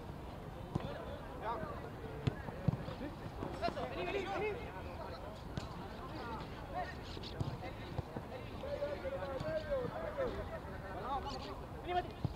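Players shout to each other on an open field.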